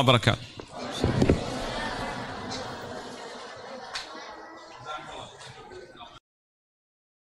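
Footsteps shuffle across the floor.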